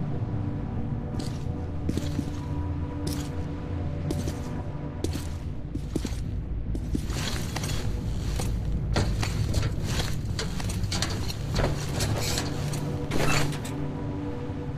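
Metal clanks as a man climbs into a machine gun turret.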